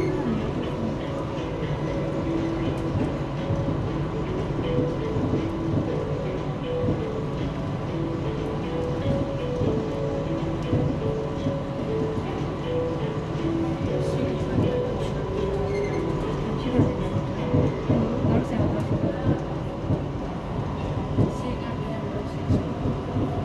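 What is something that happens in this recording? An elevated metro train runs along the rails, its motors humming.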